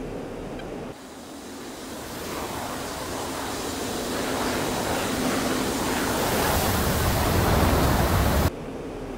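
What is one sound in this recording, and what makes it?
A fighter jet's engines roar loudly and grow louder as it flies past.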